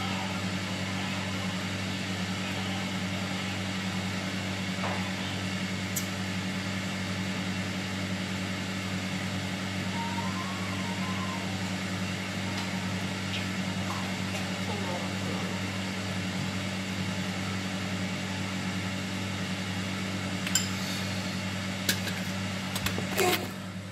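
A ladle clinks against metal pots and bowls.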